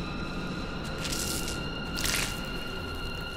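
A magic portal crackles and whooshes.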